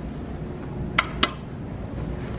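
A finger clicks an elevator call button.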